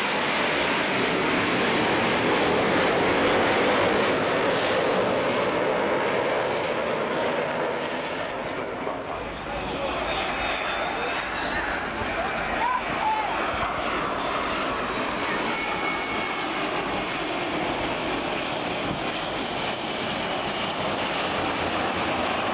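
A jet engine roars steadily overhead, its pitch slowly shifting as the plane passes.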